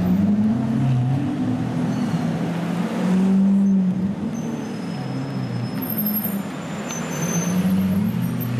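City traffic hums steadily in the background.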